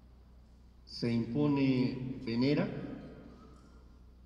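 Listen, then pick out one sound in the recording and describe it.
A man speaks briefly and loudly.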